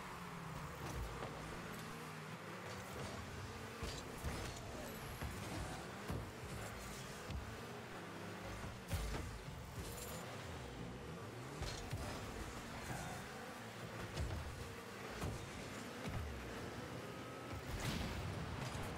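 A ball thuds when struck.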